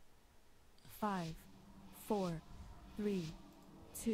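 A short falling chime sounds once a second, counting down.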